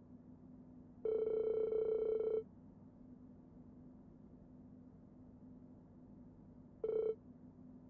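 A steady electronic tone hums briefly.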